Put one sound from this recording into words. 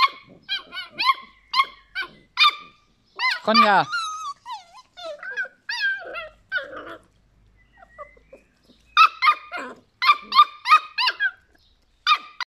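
A puppy yelps and whines in high, sharp bursts.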